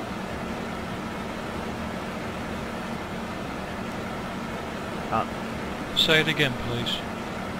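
Jet engines hum steadily in the background.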